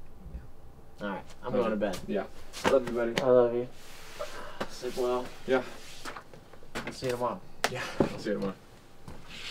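Two young men talk quietly close by.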